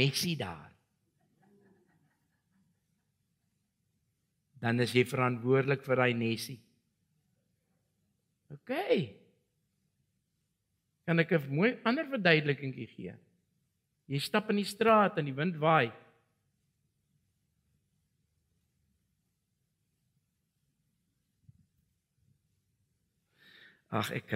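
An elderly man preaches with animation into a microphone, in bursts with long pauses.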